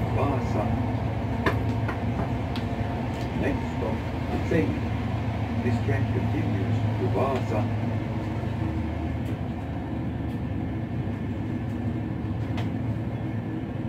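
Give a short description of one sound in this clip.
Train wheels click and clatter over rail joints.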